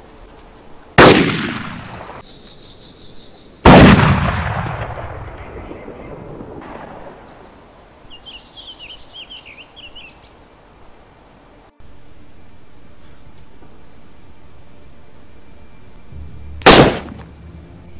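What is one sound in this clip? A rifle fires sharp, loud shots that echo and fade away.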